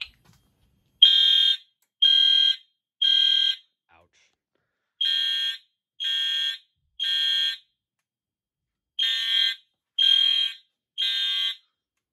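A fire alarm horn sounds in groups of three loud, harsh blasts.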